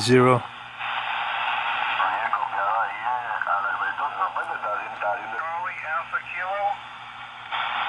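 Garbled voices come through a radio loudspeaker over the static.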